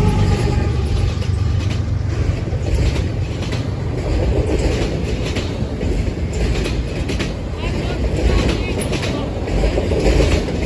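A freight train rumbles past close by.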